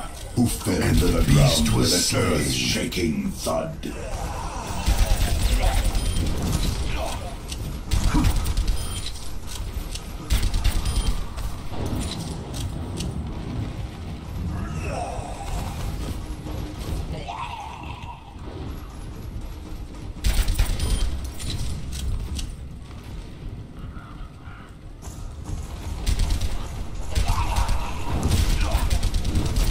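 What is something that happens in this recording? A gun fires rapid bursts of laser shots.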